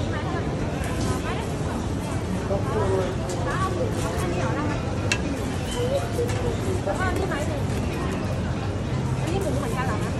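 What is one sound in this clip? A metal spatula scrapes across a hot griddle.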